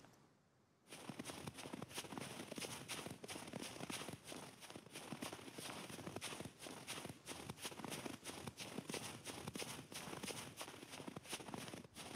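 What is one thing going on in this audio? Footsteps crunch steadily through snow.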